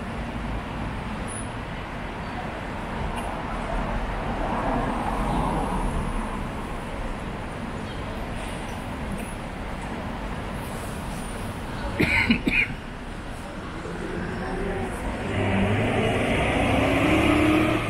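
Cars drive past on a city street.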